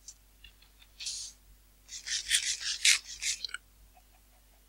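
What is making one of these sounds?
Crunchy chewing and munching comes in quick bursts.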